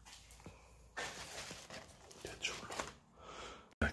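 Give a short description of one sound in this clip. Papers rustle as a hand leafs through them.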